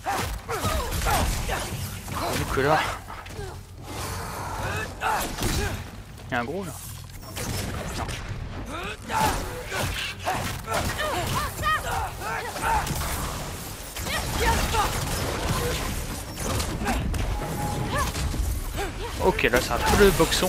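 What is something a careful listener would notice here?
A blade whooshes through the air in fiery swings.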